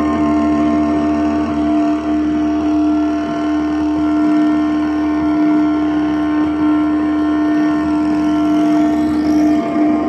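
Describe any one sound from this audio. Electronic synthesizer music plays with a steady droning tone and pulsing bass.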